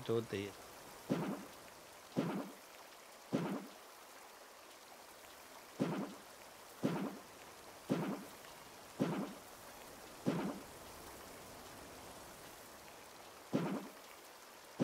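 A soft thump sounds each time a tile is placed, over and over.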